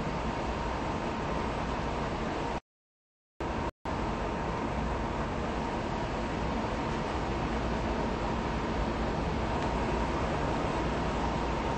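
A subway train hums steadily while standing at a platform.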